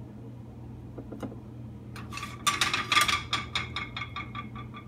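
A metal spatula scrapes against a plate.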